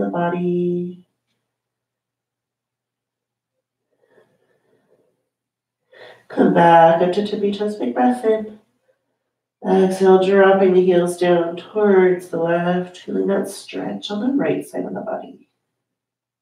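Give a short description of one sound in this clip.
A woman speaks calmly and clearly close to a microphone.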